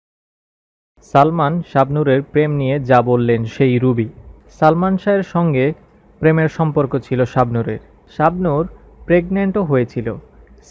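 A man sings a slow melody.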